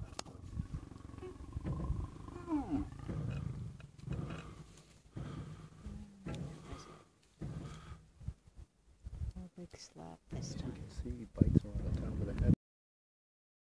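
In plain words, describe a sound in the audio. Lions growl and snarl deeply up close.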